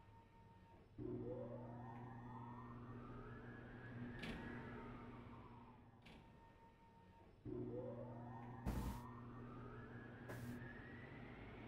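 A machine starts up with a low hum and a rising whine.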